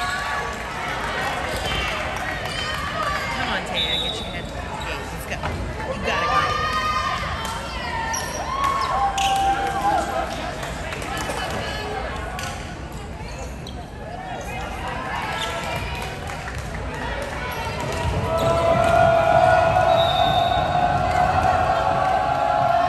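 Spectators chatter in the stands.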